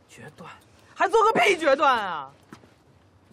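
A man shouts loudly and excitedly.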